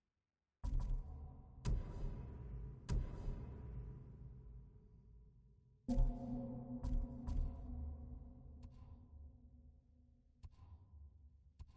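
Menu selection sounds chime and thud with each click, ringing out afterwards.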